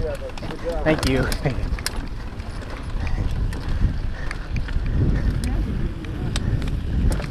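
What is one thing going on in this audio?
Mountain bike tyres crunch and rumble over a dirt trail.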